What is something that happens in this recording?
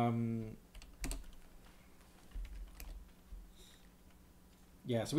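Computer keys click as a man types.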